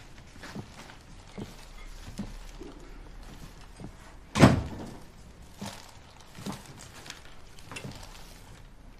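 Soft footsteps thud slowly across a wooden floor.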